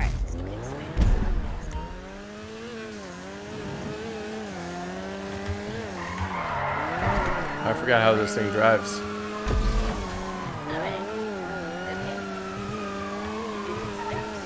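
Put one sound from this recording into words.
A car engine revs and hums, rising and falling in pitch.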